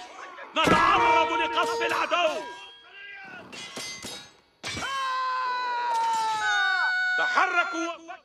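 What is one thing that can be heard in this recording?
Weapons strike against a wooden structure in a battle.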